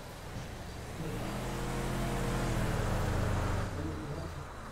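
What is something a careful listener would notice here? A car engine hums as a car drives past.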